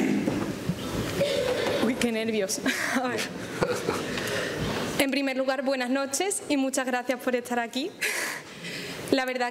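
A young woman speaks warmly through a microphone.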